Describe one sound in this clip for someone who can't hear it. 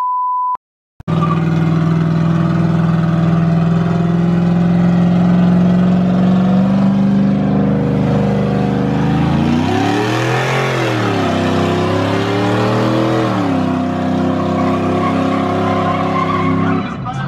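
A truck engine roars and revs loudly nearby.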